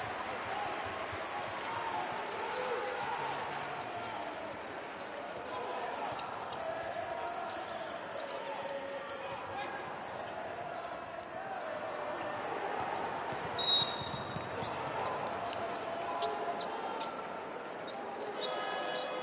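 A crowd cheers and chatters in a large echoing arena.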